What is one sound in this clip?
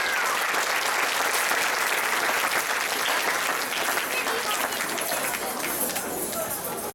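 Audience members chatter in the background.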